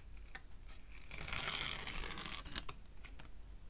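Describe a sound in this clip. Tape is peeled off paper with a ripping hiss.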